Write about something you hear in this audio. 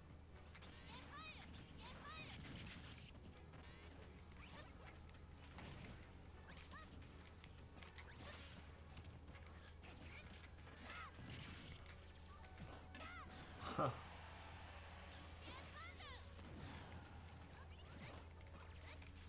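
Fighting game hits and blasts crack and thump in quick bursts.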